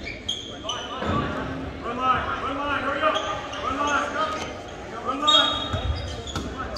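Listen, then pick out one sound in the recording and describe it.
Young players shout to each other on the court.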